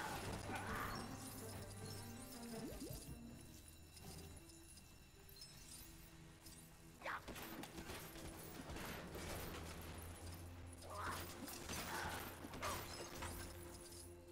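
Small coins tinkle and jingle as they are collected.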